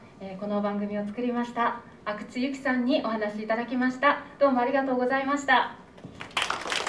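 A woman speaks clearly through a microphone in a large hall.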